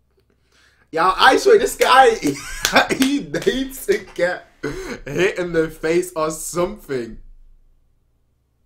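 A young man laughs loudly and excitedly close to a microphone.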